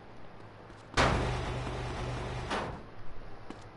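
A garage door rolls shut with a loud rattling rumble.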